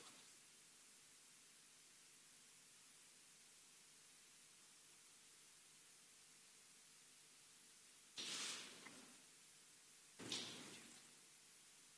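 Paper rustles as documents are handled.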